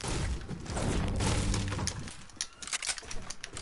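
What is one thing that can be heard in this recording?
A pickaxe strikes wood with repeated thuds and cracks.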